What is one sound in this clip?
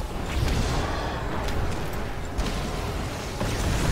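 A fiery blast roars and crackles.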